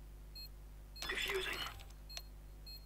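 A defuse kit clicks and rattles briefly.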